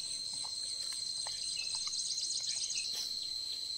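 A puppy whimpers softly nearby.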